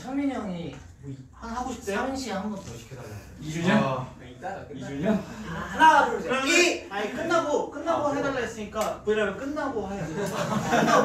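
Several young men talk and joke with animation close to a microphone.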